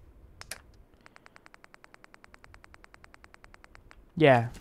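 Soft menu clicks tick rapidly in a steady run.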